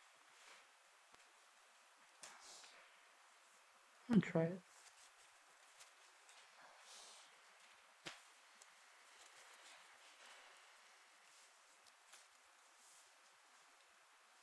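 Playing cards slide and flick against each other as they are sorted by hand.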